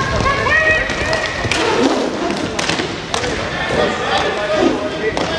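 Skate wheels roll and squeak on a hard floor in a large echoing hall.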